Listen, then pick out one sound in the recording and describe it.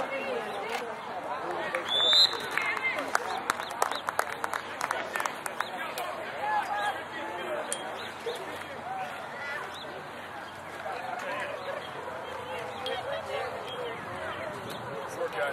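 Lacrosse players call out across an outdoor field.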